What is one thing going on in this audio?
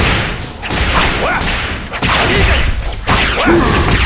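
A blade whooshes as it slashes through the air.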